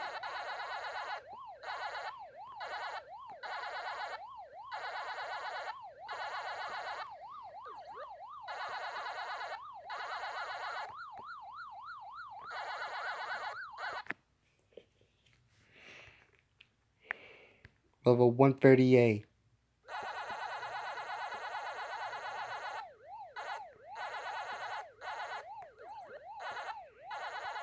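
An arcade game siren warbles steadily.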